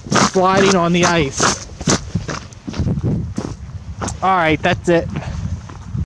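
Footsteps crunch through dry, frozen grass.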